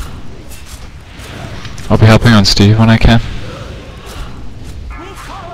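Fiery spells whoosh and crackle in bursts.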